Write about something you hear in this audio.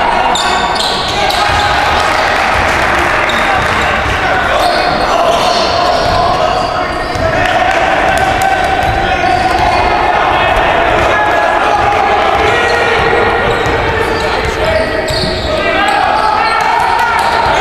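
A crowd of spectators cheers and chatters.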